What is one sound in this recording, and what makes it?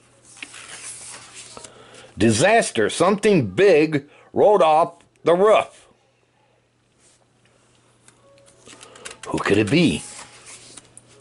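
A page of a book rustles as it turns.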